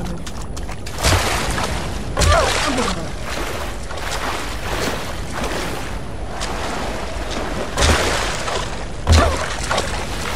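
Someone wades heavily through deep water, splashing.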